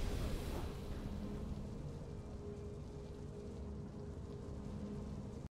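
Triumphant game music plays with a steady held chord.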